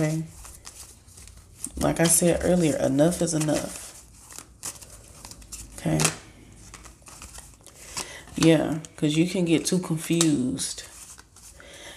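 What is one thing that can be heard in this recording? Playing cards are shuffled by hand.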